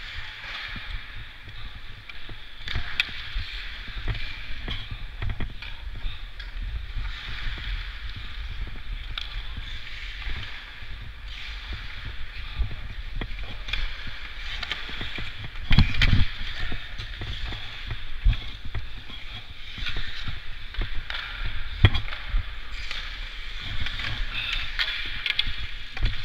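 Ice skate blades scrape and hiss across the ice.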